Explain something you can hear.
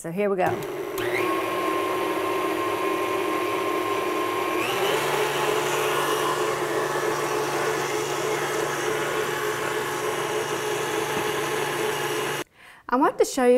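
An electric stand mixer whirs steadily, then changes speed.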